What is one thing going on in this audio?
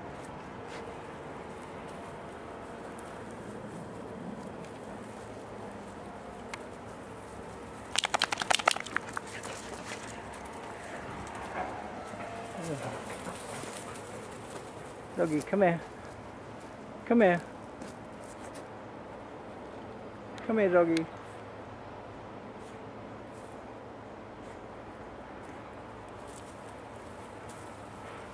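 A dog's paws patter over dry leaves and dirt.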